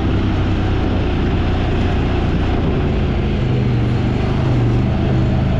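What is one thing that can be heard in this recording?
Tyres crunch over a dirt trail.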